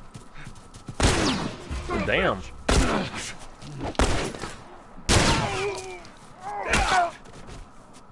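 A wooden club hits someone with heavy thuds.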